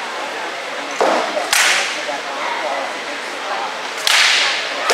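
Wooden weapons strike against a shield with sharp cracks.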